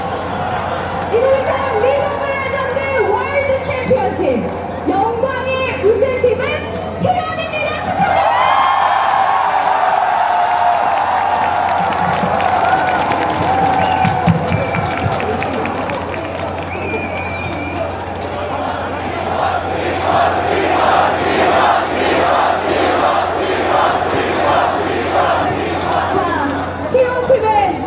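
A woman sings through loudspeakers outdoors.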